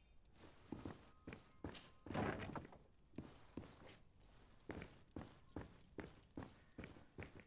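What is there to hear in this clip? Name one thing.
Footsteps tread steadily on a hard tiled floor.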